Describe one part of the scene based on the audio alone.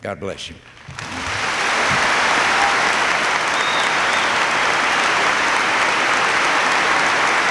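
An audience claps and applauds loudly and steadily.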